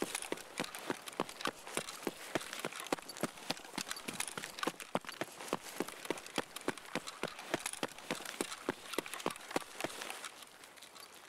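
Footsteps crunch quickly on gravel.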